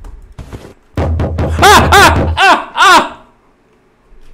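A young man screams loudly into a microphone.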